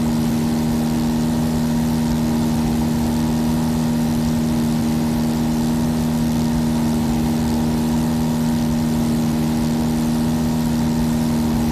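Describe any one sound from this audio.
A small propeller plane's engine drones steadily from inside the cabin.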